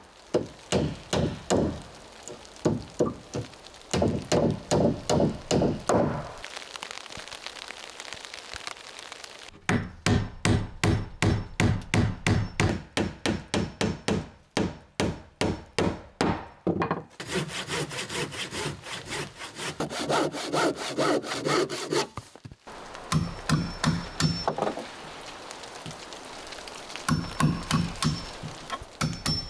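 A hammer knocks repeatedly on wood.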